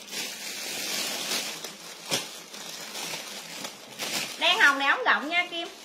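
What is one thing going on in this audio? A plastic bag rustles and crinkles in hands.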